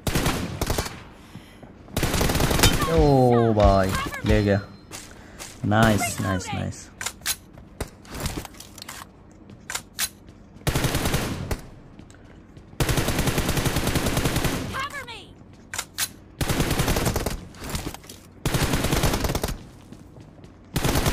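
Gunfire crackles in rapid bursts from a game on a phone speaker.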